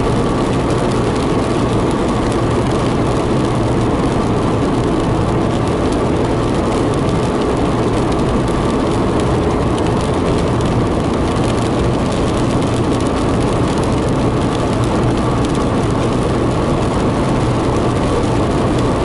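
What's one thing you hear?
Rain patters steadily on a car windscreen.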